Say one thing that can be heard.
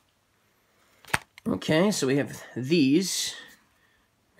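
Stiff cardboard discs rustle and tap as hands handle them.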